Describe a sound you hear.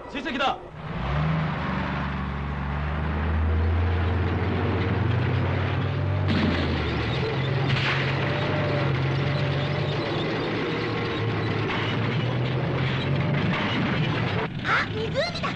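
A heavy vehicle engine rumbles steadily as it drives closer.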